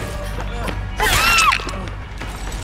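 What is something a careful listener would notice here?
A person screams in pain.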